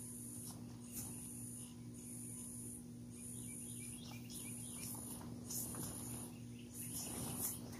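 An electric blower hums steadily.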